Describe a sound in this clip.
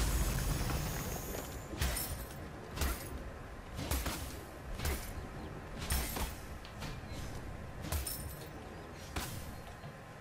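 Sharp game combat effects clash and crack in quick bursts.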